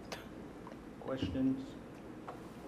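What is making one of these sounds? A woman speaks briefly and calmly into a microphone.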